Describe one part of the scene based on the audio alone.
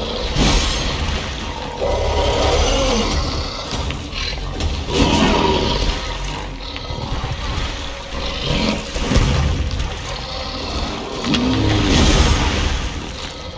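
Magic blasts burst with a whooshing crackle.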